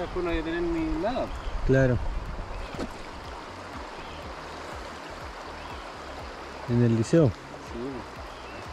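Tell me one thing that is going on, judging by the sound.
A man talks in short bursts close by.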